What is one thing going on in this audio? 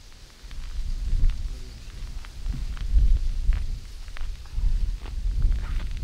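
A man's hands make small clicks and taps on fishing gear.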